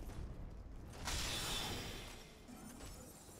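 A heavy weapon strikes with a loud crash.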